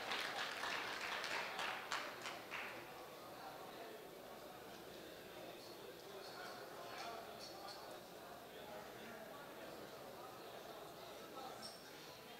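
A crowd of men murmur and chat quietly in a large room.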